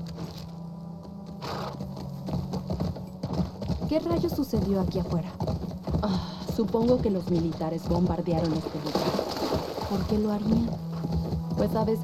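A horse gallops, hooves thudding on grass and dirt.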